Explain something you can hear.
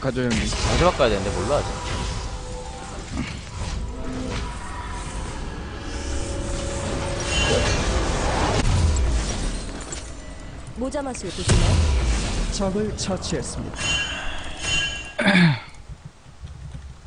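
Game sound effects chime and clash.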